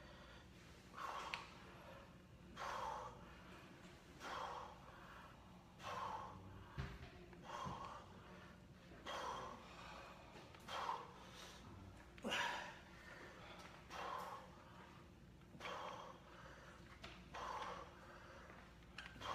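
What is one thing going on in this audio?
A man breathes out hard and rhythmically with each lift, close by.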